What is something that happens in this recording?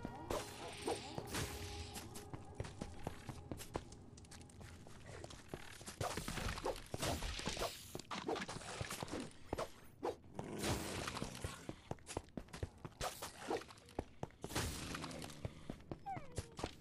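Swords clash and strike in quick repeated hits.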